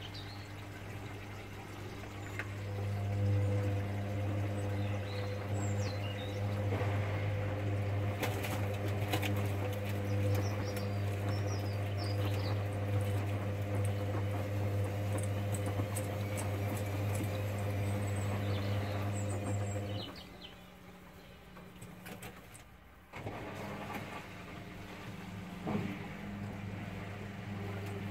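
Laundry sloshes and tumbles inside a washing machine.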